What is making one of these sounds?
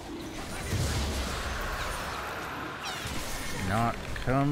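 Magical spell effects whoosh and crackle in a fast fight.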